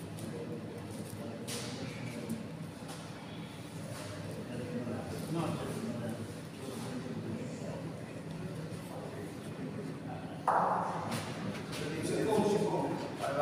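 Men talk in the background of a large echoing hall.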